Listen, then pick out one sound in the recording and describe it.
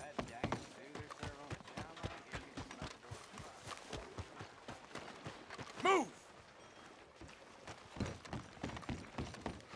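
Footsteps crunch on a dirt road.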